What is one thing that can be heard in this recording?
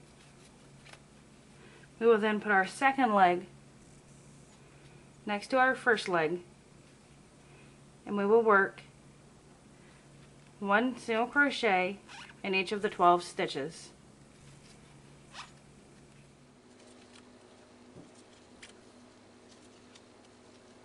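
A crochet hook softly scrapes and clicks through yarn.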